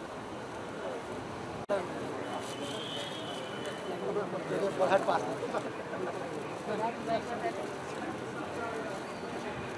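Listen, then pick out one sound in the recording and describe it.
A crowd of men chatters nearby outdoors.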